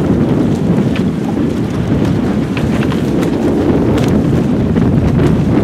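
Choppy water laps and splashes against small boats.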